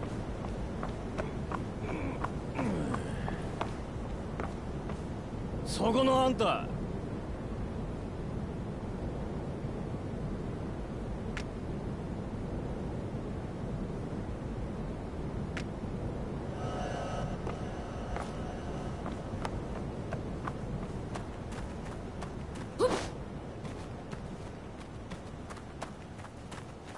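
Quick footsteps thud on wooden boards.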